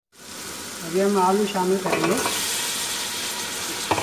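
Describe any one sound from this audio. Potato chunks tumble into a hot pot.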